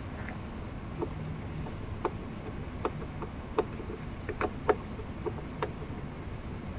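A screwdriver clicks and scrapes against plastic.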